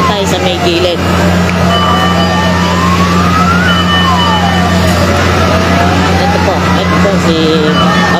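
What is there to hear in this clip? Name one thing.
A crowd of people shouts and cheers.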